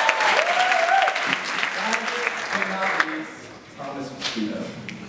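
A group of young men and a young woman sing together without instruments in a large hall.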